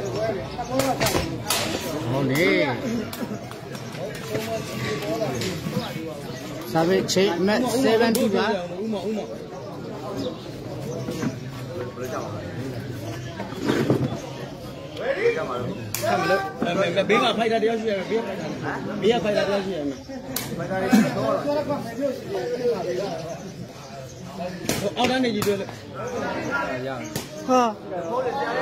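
A ball is kicked with sharp thuds.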